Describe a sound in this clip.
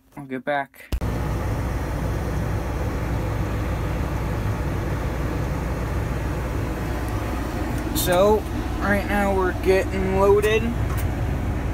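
A heavy machine's engine rumbles steadily and loudly nearby.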